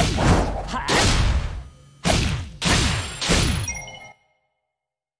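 Game attack sounds whoosh and strike in quick bursts.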